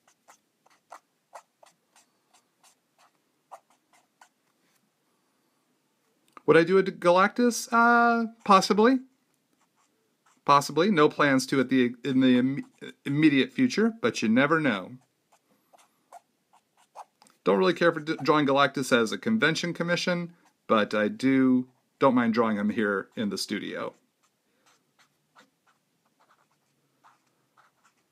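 A felt-tip marker scratches and taps softly on paper.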